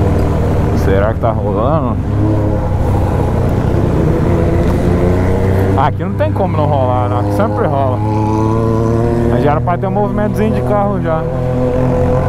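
A motorcycle engine revs up and down as gears change.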